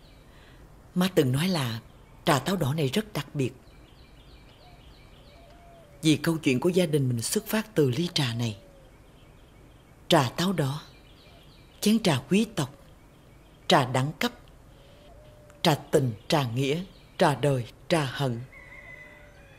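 A middle-aged woman speaks softly and warmly, close by.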